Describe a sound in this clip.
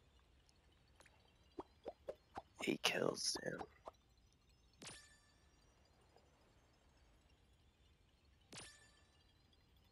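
Short electronic game sound effects whoosh and chime.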